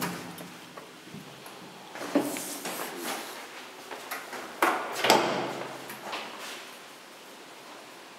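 Footsteps tap on hard steps.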